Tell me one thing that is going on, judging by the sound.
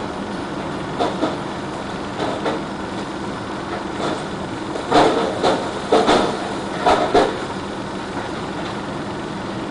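A heavy engine rumbles steadily nearby.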